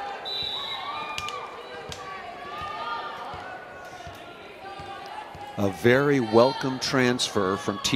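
A volleyball bounces on a hard floor.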